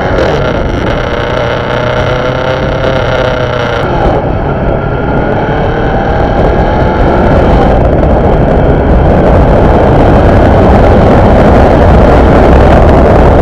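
Tyres roll steadily on asphalt.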